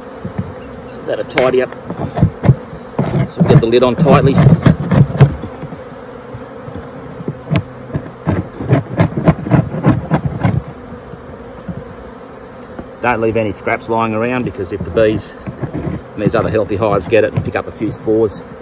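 A hive tool scrapes and clicks.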